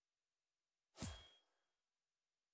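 A short menu click sounds as a selection changes.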